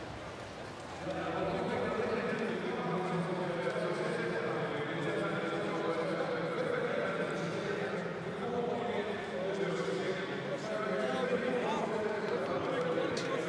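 A large crowd murmurs steadily in the background.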